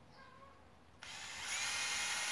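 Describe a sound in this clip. A cordless drill whirs steadily up close.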